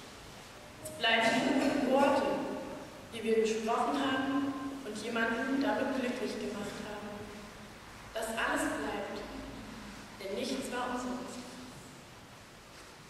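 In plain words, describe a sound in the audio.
A woman reads out through a microphone in an echoing hall.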